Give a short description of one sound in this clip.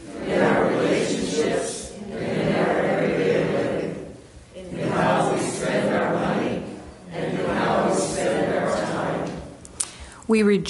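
An elderly woman reads aloud calmly into a microphone.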